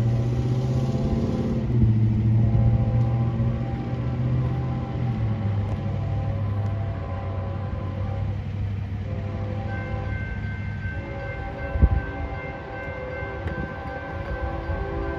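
A diesel locomotive engine rumbles and drones steadily nearby.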